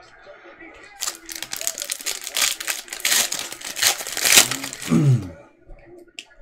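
Hands crinkle and tear open a foil trading card pack.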